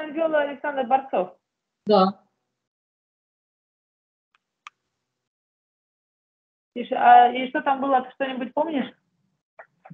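A woman speaks with animation over an online call.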